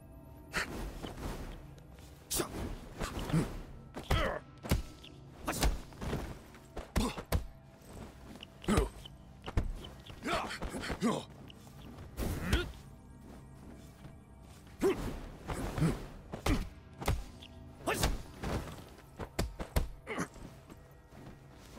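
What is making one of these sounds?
A man grunts and shouts with effort as he fights.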